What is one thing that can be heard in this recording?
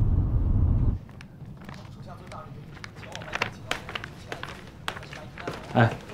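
Papers rustle and flap.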